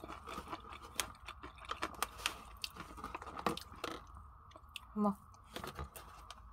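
A soft bun squishes as fingers squeeze a burger.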